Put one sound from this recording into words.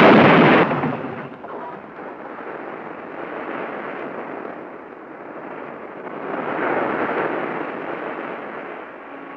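Ocean waves wash onto a shore.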